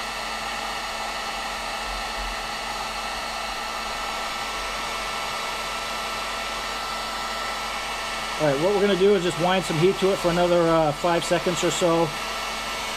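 A heat gun blows with a steady whirring hum.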